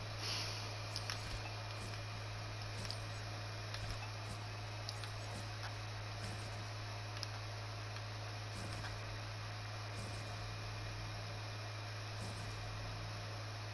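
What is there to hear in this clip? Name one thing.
Game building pieces click and snap into place.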